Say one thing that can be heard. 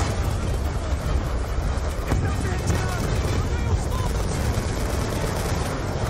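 Gunfire crackles in a battle.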